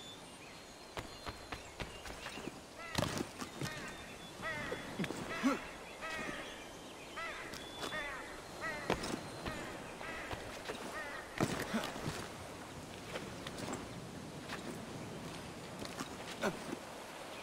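Hands and feet knock lightly against a wooden trunk while climbing.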